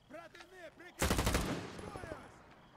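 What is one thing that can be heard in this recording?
A rifle fires a short burst of gunshots that echo away.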